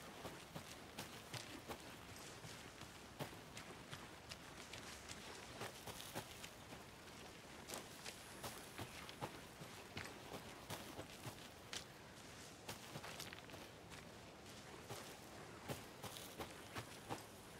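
Footsteps crunch on twigs and leaves.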